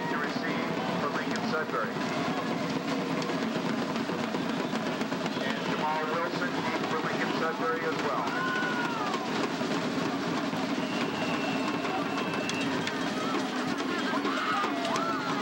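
A crowd of spectators murmurs and chatters steadily outdoors.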